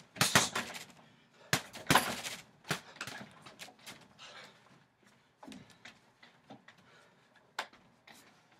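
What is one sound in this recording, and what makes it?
Fists thud against a heavy punching bag.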